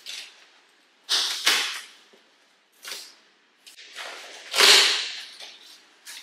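Packing tape rips off a cardboard box.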